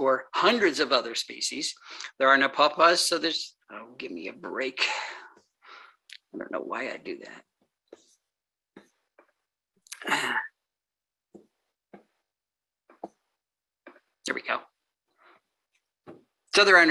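An elderly woman speaks calmly over an online call, with pauses.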